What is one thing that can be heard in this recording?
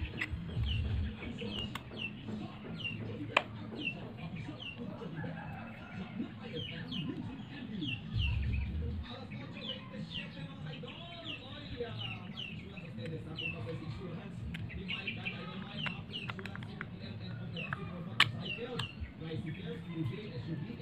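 Small metal parts click and clink as hands handle them.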